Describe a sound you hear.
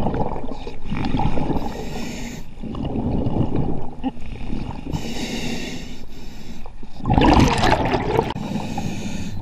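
Water rumbles and swirls underwater.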